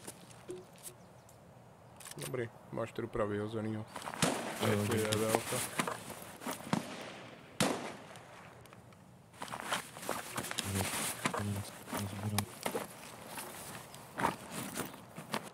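Gear rustles and clicks as items are moved in a game.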